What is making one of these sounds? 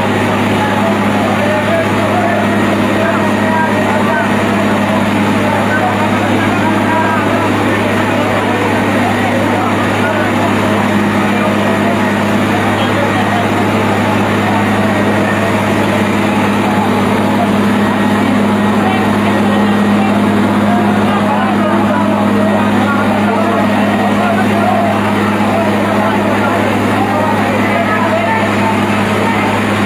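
A fire truck's pump engine hums steadily.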